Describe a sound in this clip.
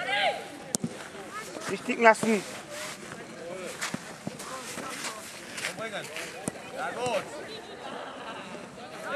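Children shout outdoors during a football game.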